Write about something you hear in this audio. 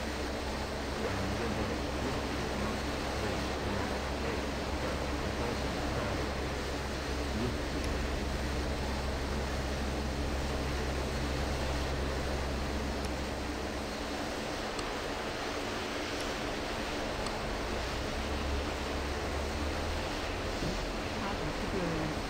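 A propeller plane's engine hums steadily.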